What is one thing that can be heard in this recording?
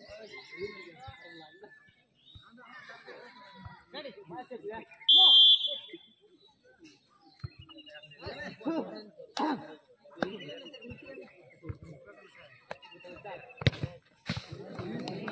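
A crowd of young men chatters and calls outdoors.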